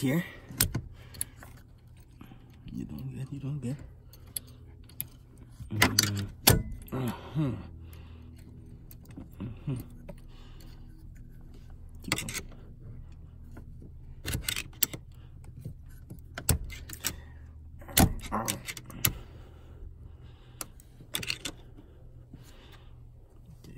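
Metal tools click and scrape against metal parts close by.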